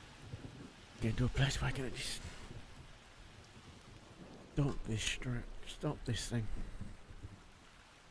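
A man talks into a close microphone, casually.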